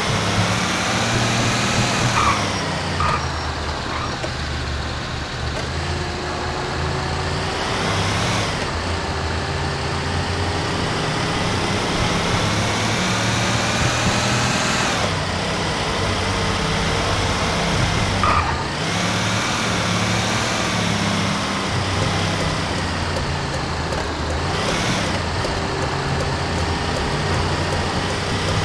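A heavy truck engine revs up through its gears, dropping in pitch at each gear change.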